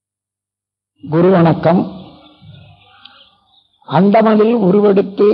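An elderly man chants slowly and steadily.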